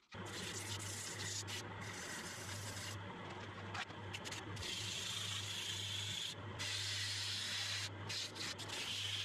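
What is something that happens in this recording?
A hand presses against a spinning wheel with a rough grinding hiss.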